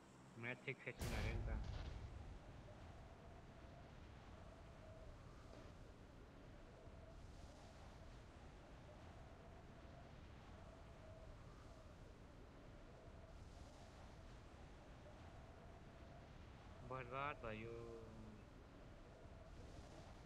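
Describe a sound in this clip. Wind rushes loudly.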